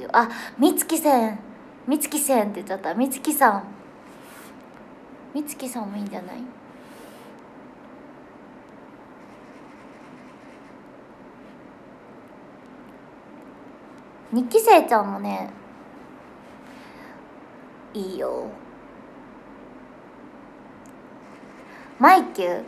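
A young woman talks casually and cheerfully into a nearby microphone, in short bursts with pauses.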